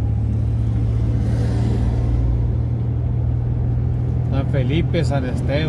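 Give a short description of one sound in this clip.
A car engine hums steadily with a low droning rumble from inside the moving car.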